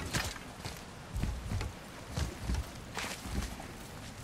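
A man's hands and feet knock against a wooden ladder as he climbs.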